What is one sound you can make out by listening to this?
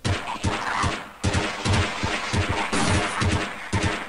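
Pistol shots ring out in an echoing corridor.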